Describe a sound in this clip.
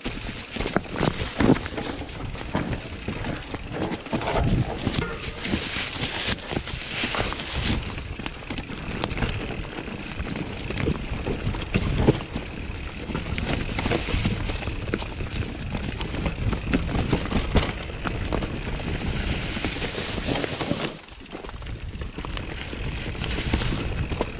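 Bicycle tyres roll and crunch over rocks and dry leaves.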